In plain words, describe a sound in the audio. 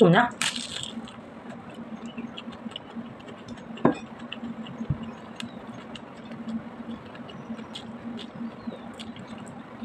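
A woman chews food close to the microphone.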